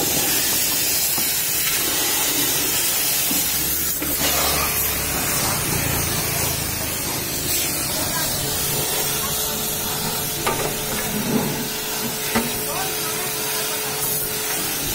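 A pressure washer sprays water hard against a tyre with a steady hiss.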